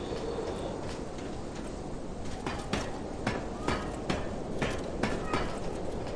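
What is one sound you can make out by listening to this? Hands and feet clank on a metal ladder while climbing.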